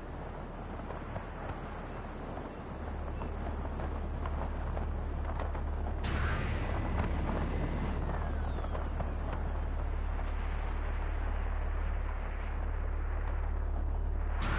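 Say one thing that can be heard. Wind rushes loudly and steadily past a gliding wingsuit flyer.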